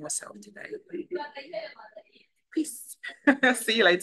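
A young woman speaks warmly and closely into a microphone.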